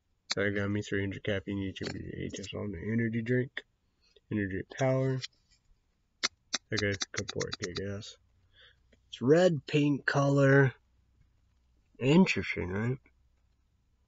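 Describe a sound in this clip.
A young man talks casually and close to the microphone, with pauses.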